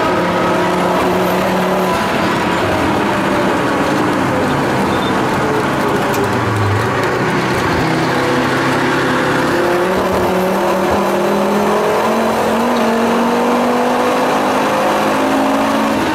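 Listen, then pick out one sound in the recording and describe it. A car engine roars loudly from inside the car, its pitch falling and rising as the car shifts gears and speeds up.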